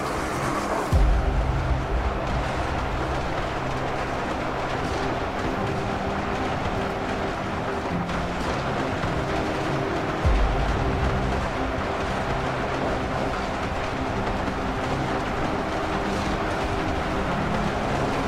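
Helicopter rotors thump steadily.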